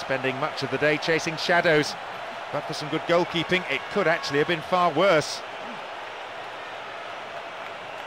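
A large crowd murmurs and cheers steadily in a stadium.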